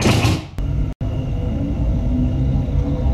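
A train rolls steadily along the rails.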